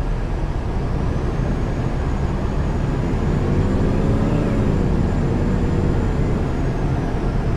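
A bus engine revs up and then settles.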